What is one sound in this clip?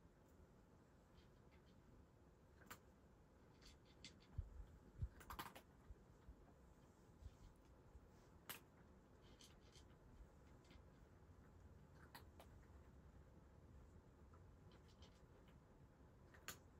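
A cat crunches dry food in short, quiet bursts.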